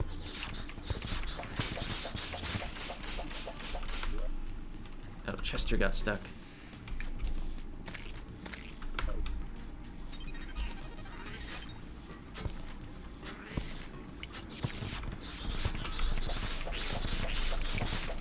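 Game sound effects of hits and pickups chime and thud in quick bursts.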